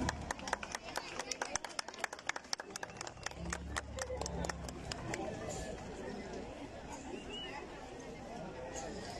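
A large crowd chatters and cheers.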